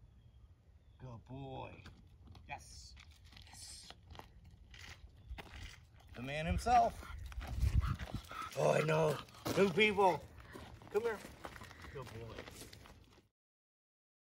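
A man talks to a dog nearby.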